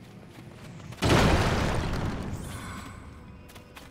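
Heavy rocks crash down and rumble.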